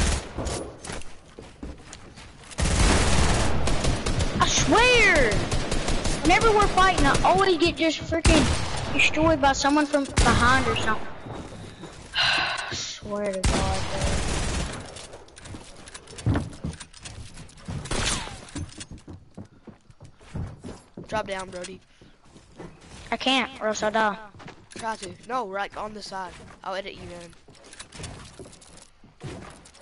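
Wooden walls snap into place with quick clacks.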